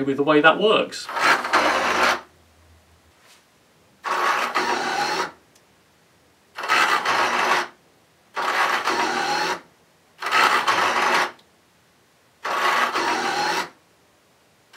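A small motor whirs in repeated short bursts.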